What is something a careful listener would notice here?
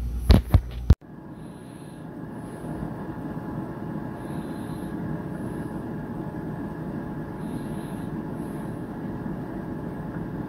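An air fryer hums steadily.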